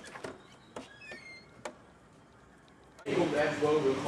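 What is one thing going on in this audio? A door handle clicks and a door swings open.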